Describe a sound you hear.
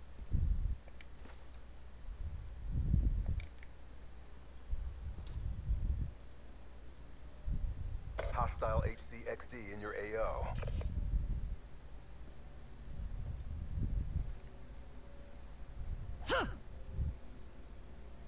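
Heavy footsteps thud on a dirt path.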